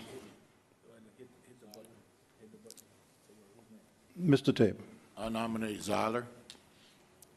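An elderly man speaks calmly into a microphone, heard through a loudspeaker in an echoing hall.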